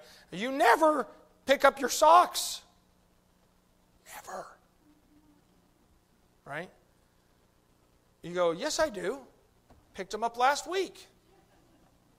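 A middle-aged man speaks with emphasis through a microphone, in bursts with pauses.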